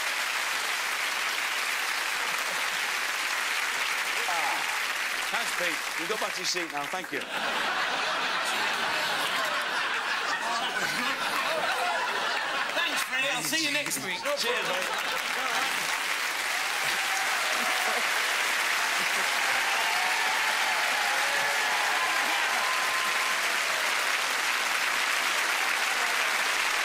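A large audience claps and cheers loudly.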